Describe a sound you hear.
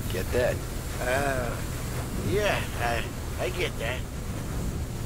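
A second man answers hesitantly.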